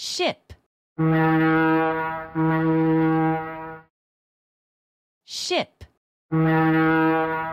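A ship's horn blows deep, long blasts.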